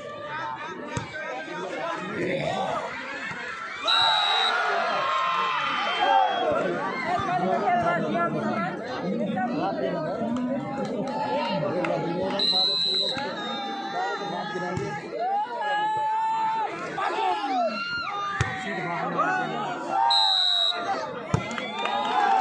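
A volleyball is struck with dull thuds.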